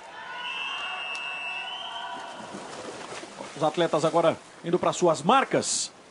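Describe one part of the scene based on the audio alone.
Swimmers dive and splash into a pool.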